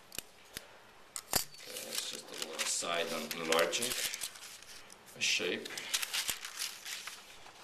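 Paper sheets rustle and flap as pages are flipped by hand.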